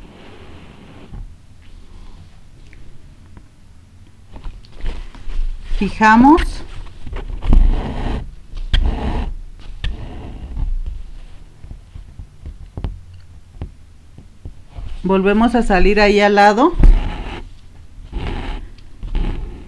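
Thread rustles softly as it is pulled through fabric.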